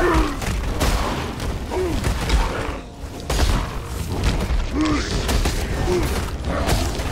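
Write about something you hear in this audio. Monsters shriek and growl as they attack.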